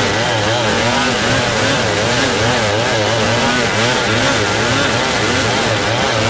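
A second two-stroke chainsaw wavers in pitch under load as it rips through a hardwood log.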